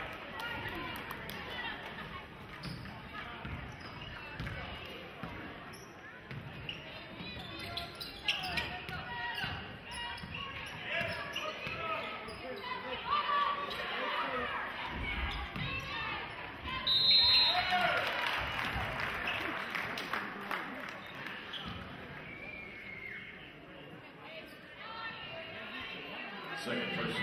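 Basketball shoes squeak on a wooden floor.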